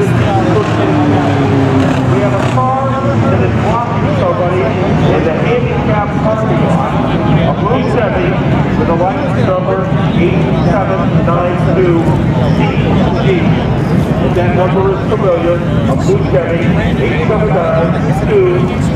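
A nearby grandstand crowd of men and women chatters outdoors.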